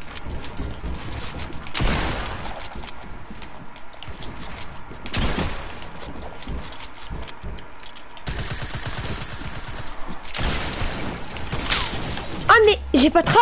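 Video game building sounds clatter and thud in quick bursts.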